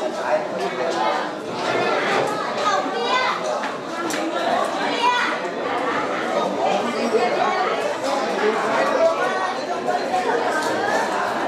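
A crowd of men and women talk over one another nearby.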